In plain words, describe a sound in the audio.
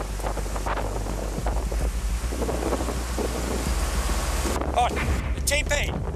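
A wildfire roars and crackles close by.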